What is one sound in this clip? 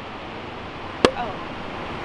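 A champagne cork pops sharply.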